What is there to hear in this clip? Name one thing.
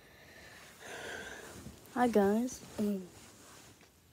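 A girl speaks up close to the microphone, in a high, sing-song voice.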